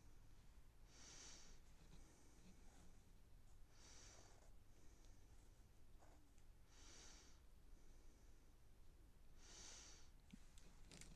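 A pencil scratches softly across paper in short strokes.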